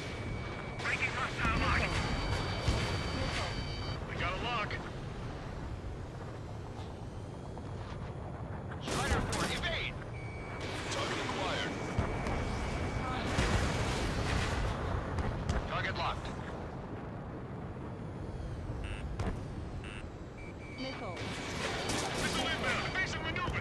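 A cannon fires in rapid bursts.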